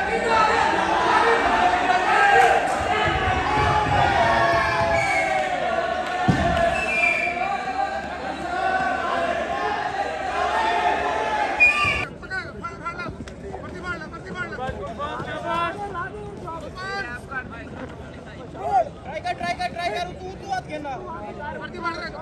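A crowd of men chatters and calls out nearby.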